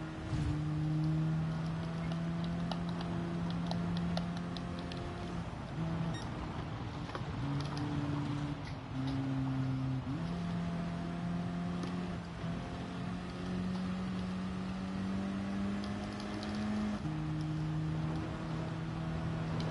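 Tyres crunch over loose gravel.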